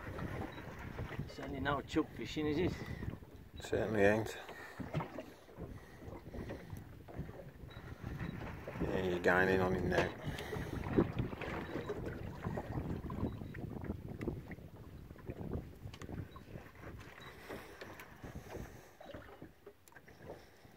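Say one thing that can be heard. Wind blows outdoors over open water.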